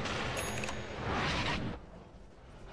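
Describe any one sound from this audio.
A fiery burst whooshes briefly.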